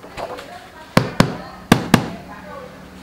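A rubber stamp thumps down on paper a few times.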